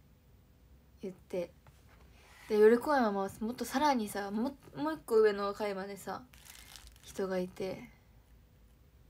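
A young woman speaks softly and casually close to a microphone.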